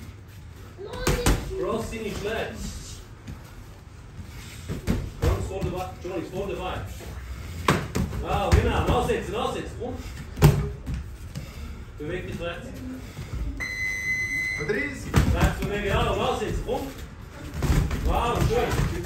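Gloved punches thud against pads and arms.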